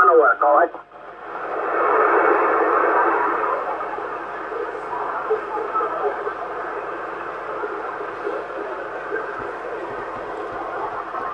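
A radio receiver hisses with steady static.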